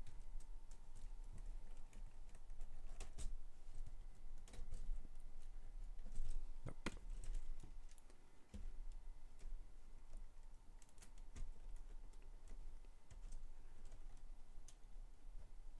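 Plastic toy bricks click and rattle as they are handled close by.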